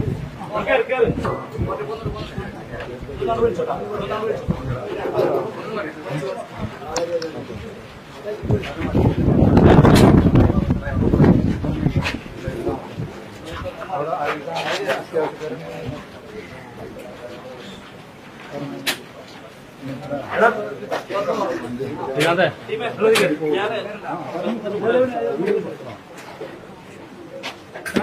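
A crowd of men talks and shouts close by.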